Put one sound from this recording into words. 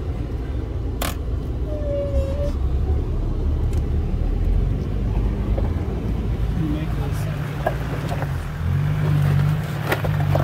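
A vehicle body rattles and knocks over bumps.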